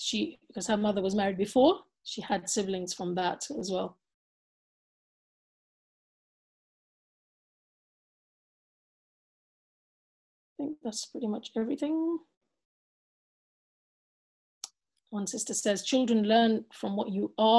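A woman speaks calmly and close to a microphone, with long pauses.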